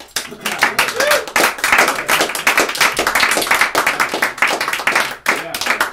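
A man claps his hands quickly.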